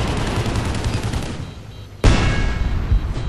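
A heavy gun fires with a loud blast.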